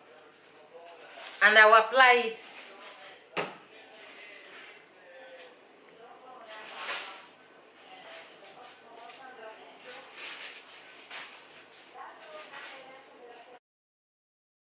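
A brush rustles through hair.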